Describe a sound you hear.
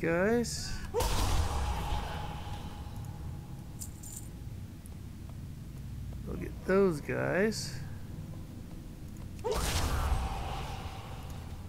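A magic blast bursts with a whooshing roar.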